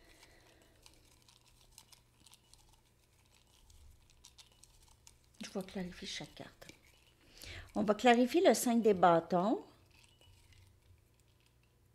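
Fingers scrape and rustle inside a small ceramic cup.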